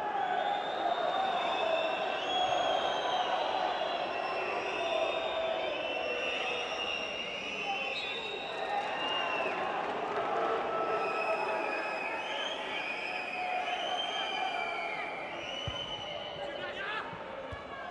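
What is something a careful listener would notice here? A large stadium crowd sings and chants loudly.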